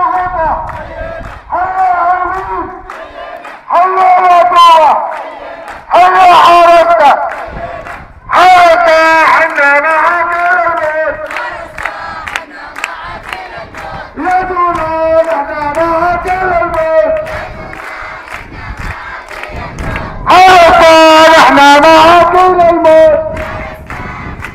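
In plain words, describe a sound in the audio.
A crowd claps hands in time.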